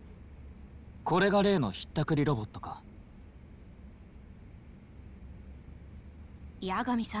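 A man speaks with surprise, close by.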